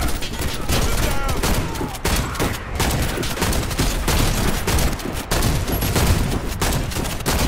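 An automatic rifle fires bursts in a video game.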